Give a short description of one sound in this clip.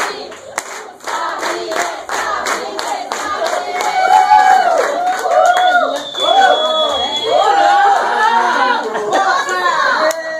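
A group of people clap their hands in rhythm nearby.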